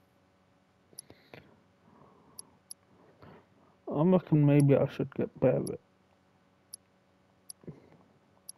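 Short electronic menu blips sound as selections change.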